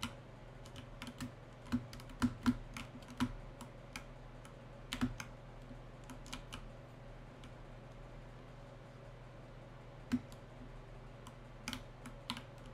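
Short electronic game sound effects pop and click now and then.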